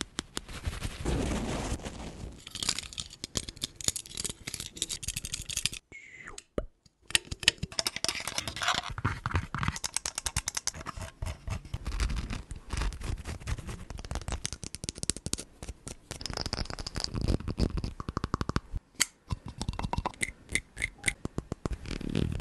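Fingers tap and scratch quickly on a microphone.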